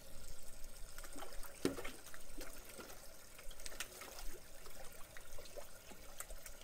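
Fish splash and slurp at the water's surface as they feed.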